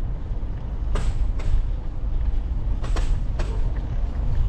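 A bicycle rattles over bumps in the pavement.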